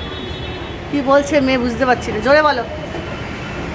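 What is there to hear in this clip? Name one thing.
A young woman speaks brightly, close by.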